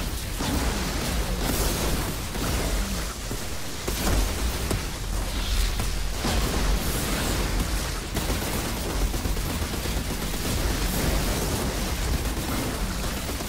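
A rapid-fire gun blasts again and again.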